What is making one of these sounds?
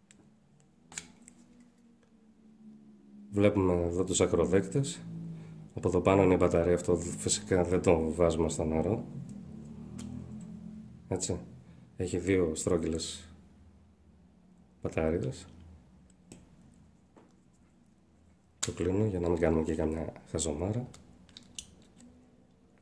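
A plastic cap clicks on and off a small handheld device.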